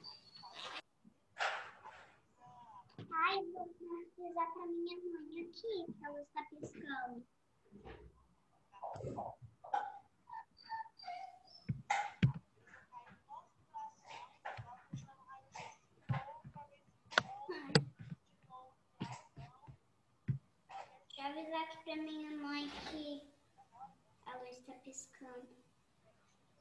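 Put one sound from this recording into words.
Young children speak and call out over an online call.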